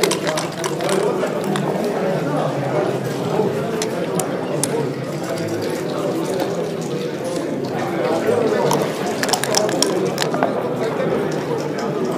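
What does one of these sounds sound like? Dice rattle and tumble onto a wooden board.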